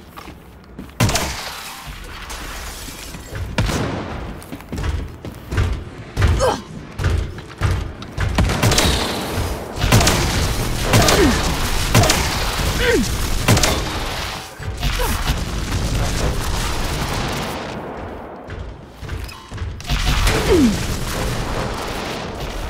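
Guns fire in rapid bursts with loud bangs.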